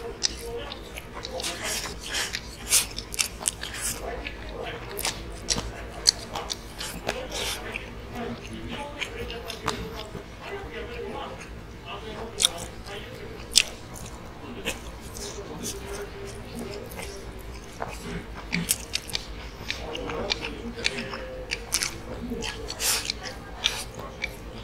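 A man slurps noodles noisily from a bowl, close by.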